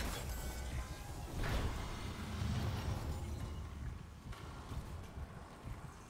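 Heavy boots clank on a metal floor.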